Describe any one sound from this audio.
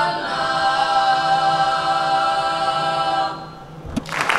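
A group of children sing together through microphones, holding a final note.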